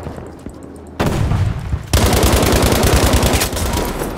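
A rifle fires a sharp, loud shot.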